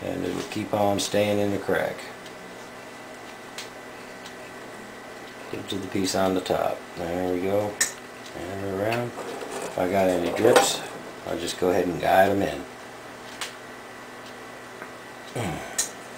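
A small tool scrapes against a tin can.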